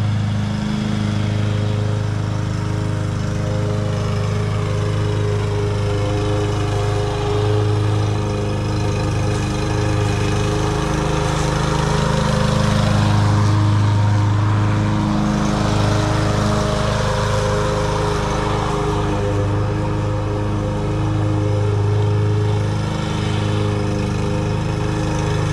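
A petrol lawn mower engine drones steadily, growing louder as it passes close by.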